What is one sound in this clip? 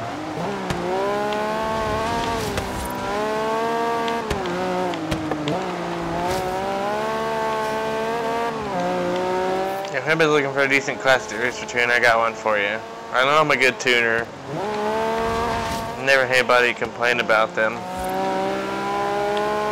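A car engine roars, revving up and down as gears change.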